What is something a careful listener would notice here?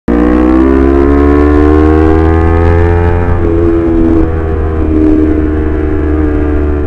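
Wind buffets the microphone on a moving motorcycle.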